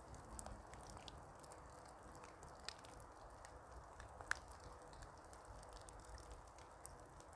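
Water drops drip softly from branches.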